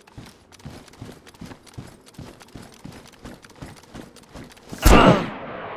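Boots thud in steady footsteps on a hard floor.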